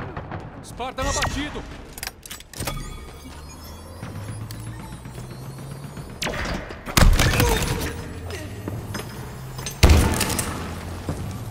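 Gunshots fire in sharp, loud bursts.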